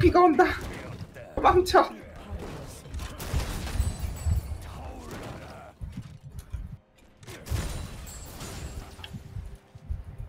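Game characters clash with thuds and hits.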